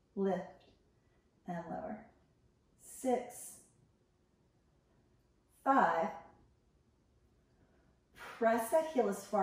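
A woman speaks calmly in short phrases with pauses, close by.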